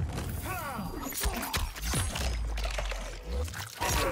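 Bones crunch and flesh tears in a gory blow.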